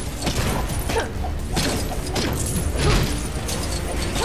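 Game blasts and impacts crackle in quick bursts.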